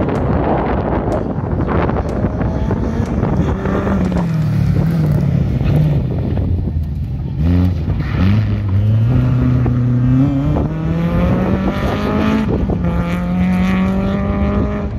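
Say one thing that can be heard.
A rally car engine roars as it races past, revving hard.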